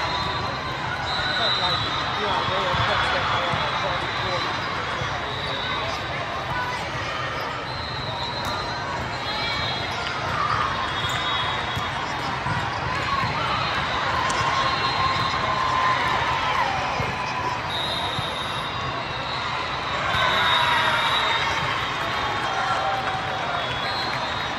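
Crowd chatter echoes through a large hall.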